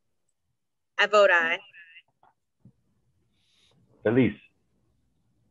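A woman answers briefly over an online call.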